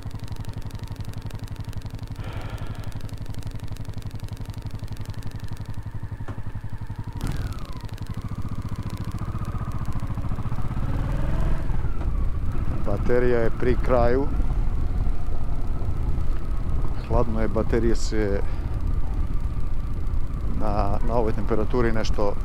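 A motorcycle engine rumbles close by and grows louder as the motorcycle rides along.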